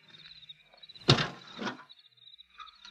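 A car's hood clunks and creaks open.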